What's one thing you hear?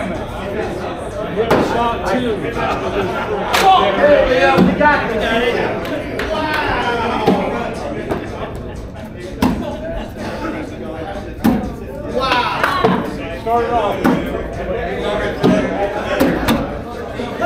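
A crowd of people chatter throughout a large echoing hall.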